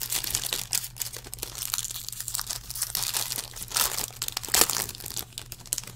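Plastic wrapping crinkles and rustles as hands tear open a pack.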